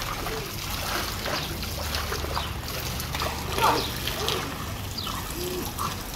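Water splashes and laps as a dog swims.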